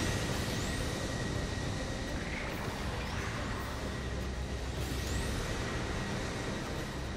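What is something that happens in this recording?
Thrusters roar steadily as a robot flies.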